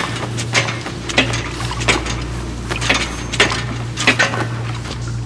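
Footsteps clank on metal ladder rungs.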